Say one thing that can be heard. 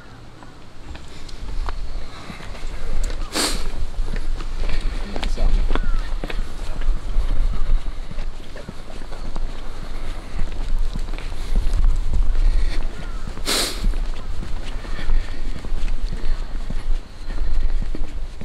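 Footsteps walk steadily on a paved path outdoors.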